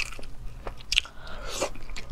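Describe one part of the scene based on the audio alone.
A young woman bites into a boiled egg.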